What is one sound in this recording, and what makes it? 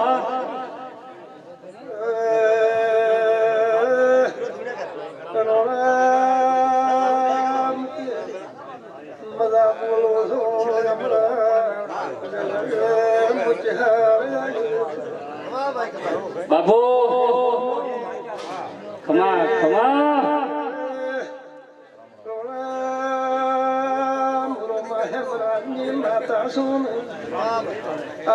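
An elderly man sings a slow devotional song into a microphone, heard through a loudspeaker.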